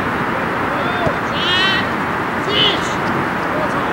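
Men shout to each other across an open field at a distance.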